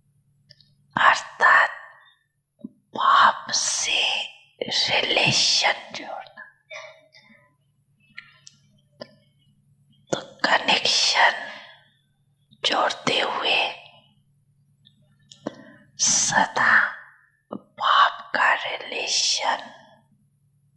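A man speaks calmly into a microphone in short phrases, with pauses.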